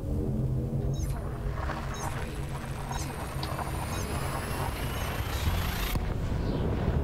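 A rushing roar with a rising whine builds up and then cuts off abruptly.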